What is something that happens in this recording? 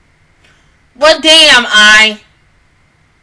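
A young woman sings loudly and briefly into a close microphone.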